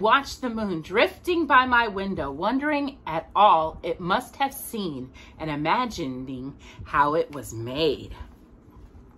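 A woman speaks with animation close by, her voice rising and falling.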